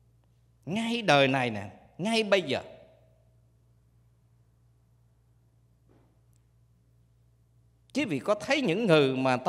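A man speaks calmly into a microphone, with long pauses.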